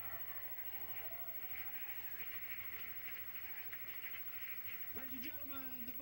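A studio audience cheers and applauds.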